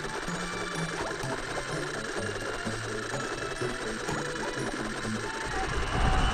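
Upbeat video game music plays with a bouncing bass line.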